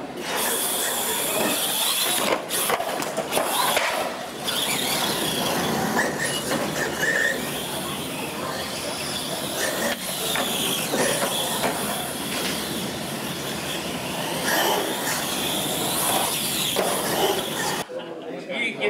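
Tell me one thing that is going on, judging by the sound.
Electric RC monster trucks whine as they race.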